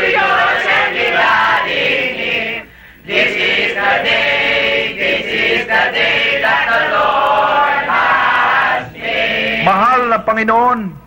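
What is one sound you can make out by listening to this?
A crowd sings loudly together.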